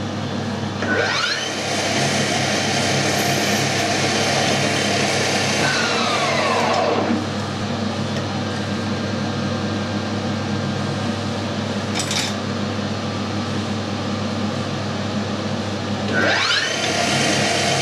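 A lathe motor whirs up to speed with a rising whine and runs steadily.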